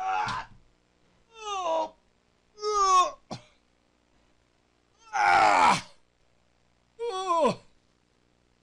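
A middle-aged man speaks animatedly into a close microphone, in short bursts.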